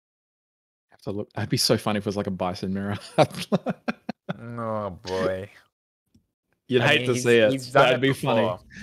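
A young man talks with animation through a microphone, as if on an online call.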